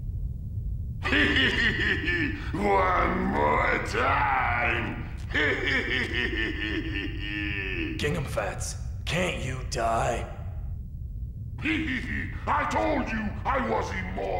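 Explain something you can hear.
A young man speaks calmly and seriously.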